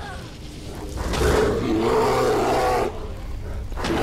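A bear roars.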